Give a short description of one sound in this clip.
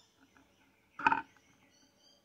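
A hand sets a record down on a turntable with a dull clunk.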